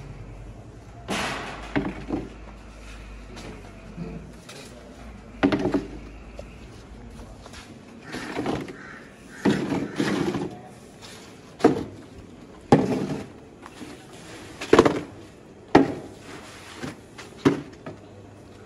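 Plastic stools clatter and knock as they are set down on the ground.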